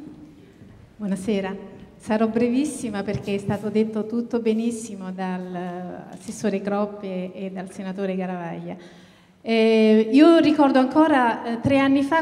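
A woman speaks warmly into a microphone, heard through loudspeakers.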